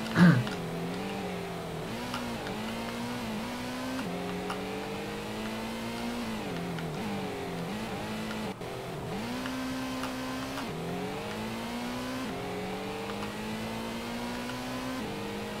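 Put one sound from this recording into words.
A racing car engine revs up and down as gears shift.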